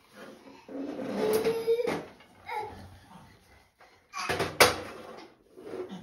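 A toddler squeals excitedly close by.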